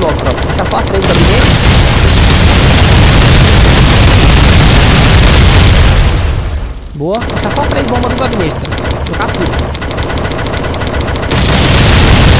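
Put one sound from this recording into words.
A blast goes off with a loud roar.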